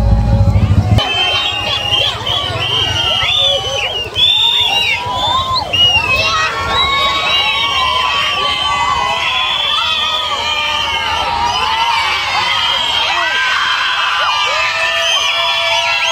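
A crowd of children and adults cheers and shouts excitedly outdoors.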